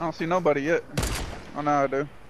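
A sniper rifle fires a single shot.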